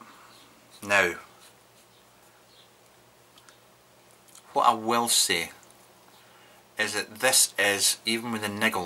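A young man talks calmly and close to a microphone, in short bursts.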